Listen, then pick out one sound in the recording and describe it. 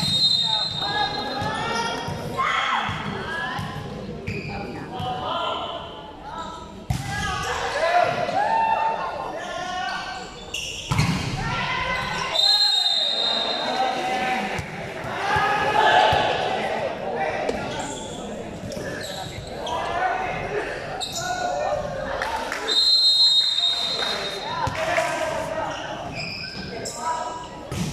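Young people shout and cheer in a large echoing hall.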